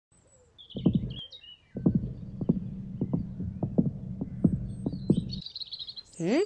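A cartoon rabbit bounces along with springy thuds.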